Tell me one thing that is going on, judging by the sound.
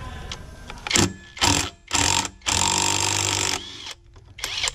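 An impact wrench rattles loudly in short bursts.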